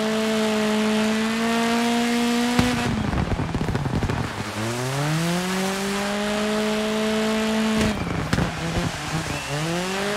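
A car engine roars at high revs, dropping and rising as gears shift.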